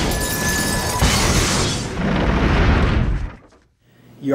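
Glass and metal crash and shatter loudly.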